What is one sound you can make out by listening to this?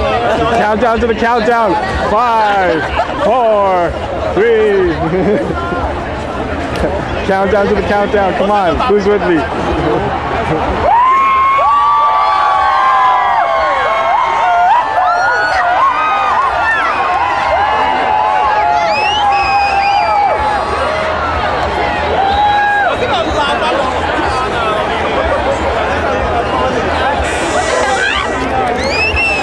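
Men and women in a crowd shout and cheer.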